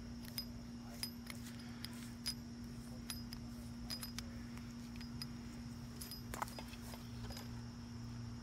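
Metal hose fittings click and scrape as they are screwed together.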